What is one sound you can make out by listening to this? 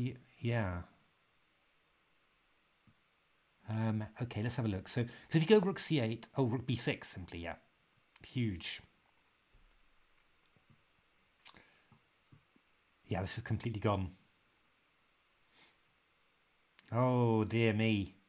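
A man speaks calmly into a microphone, in short bursts with pauses.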